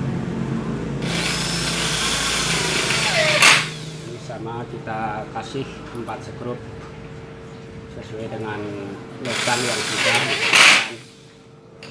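An electric drill whirs loudly in short bursts, drilling into metal.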